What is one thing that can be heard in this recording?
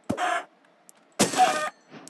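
A chicken clucks.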